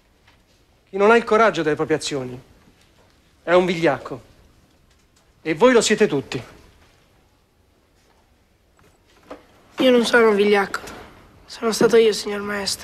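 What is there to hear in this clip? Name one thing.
A boy answers in a young voice.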